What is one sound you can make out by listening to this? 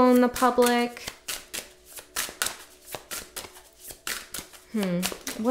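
Cards rustle and tap in a woman's hands.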